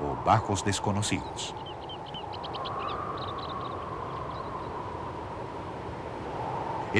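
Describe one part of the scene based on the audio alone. Wind blows steadily across open ground.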